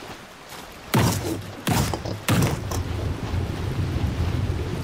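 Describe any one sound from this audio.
Water surges and gurgles loudly as a creature dives under.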